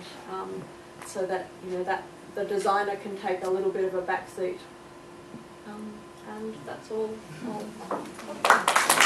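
A woman speaks calmly to a room, in a slightly echoing space.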